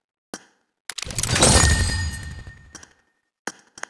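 A game plays a whooshing reward sound effect.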